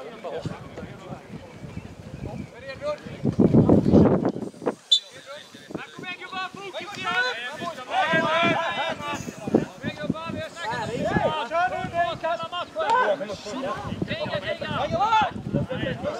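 Several men shout and call out across an open field.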